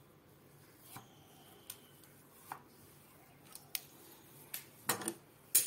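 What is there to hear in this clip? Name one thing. Small clicks and taps come from handling a sewing machine part.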